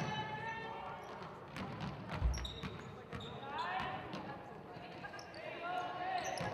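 Young women call out to each other across an echoing gym.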